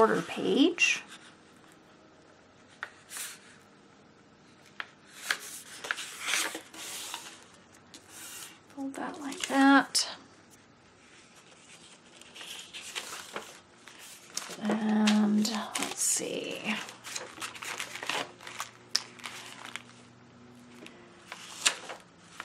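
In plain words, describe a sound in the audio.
Paper rustles and crinkles as hands fold and handle it.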